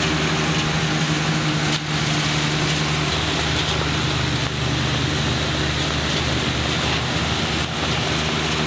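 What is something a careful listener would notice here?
A lawn sweeper rolls and whirs over pavement.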